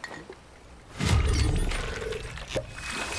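A pickaxe strikes rock with sharp knocks.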